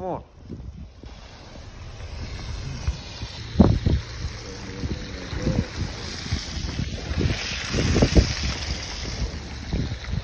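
A firework fountain hisses and crackles loudly.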